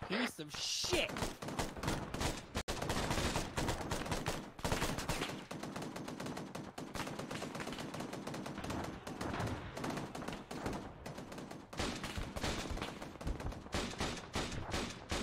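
Gunshots crack in rapid bursts outdoors.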